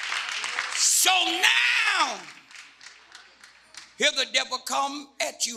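An elderly man preaches loudly and with animation through a microphone.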